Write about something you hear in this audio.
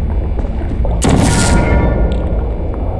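A sci-fi gun fires with a bright whooshing burst that quickly fades.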